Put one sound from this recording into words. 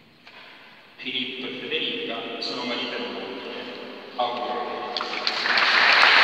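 A man speaks clearly in a large echoing hall.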